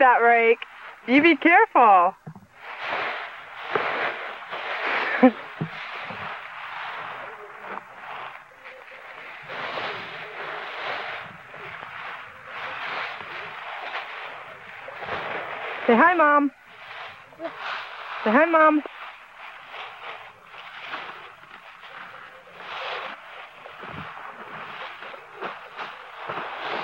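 Dry leaves rustle and crunch as a man gathers them by hand.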